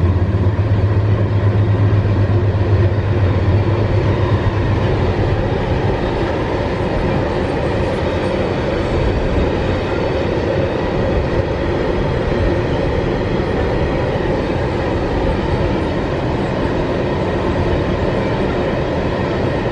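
Loaded freight wagons rumble and clatter steadily along the rails.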